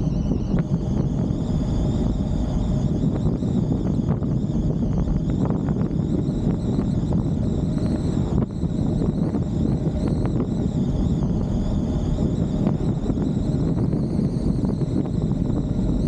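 Tyres roll steadily over the road surface.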